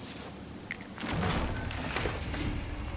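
A wooden chest bursts open with a bright magical shimmer.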